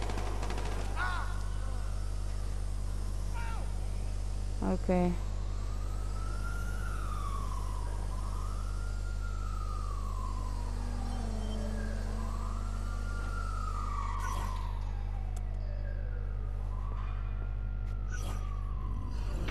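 A small drone whirs, its pitch rising and falling as it flies.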